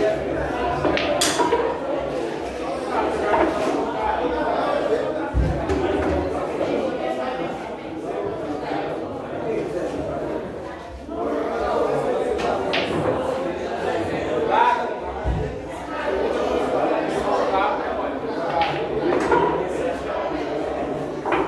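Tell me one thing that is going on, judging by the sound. A cue sharply strikes a billiard ball.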